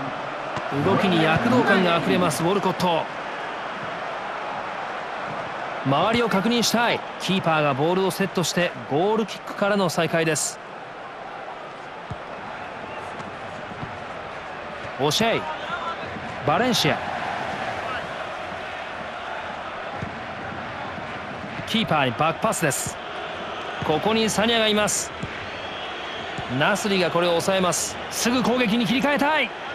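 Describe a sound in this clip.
A stadium crowd murmurs and cheers steadily in the background.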